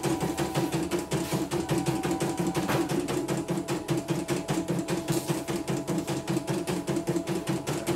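A sewing machine stitches with a fast, steady rhythmic clatter.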